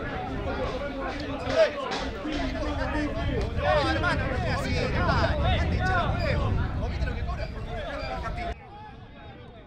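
Several young men shout and argue at a distance outdoors.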